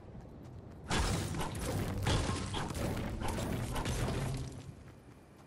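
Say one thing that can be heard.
A pickaxe strikes rock with sharp knocks.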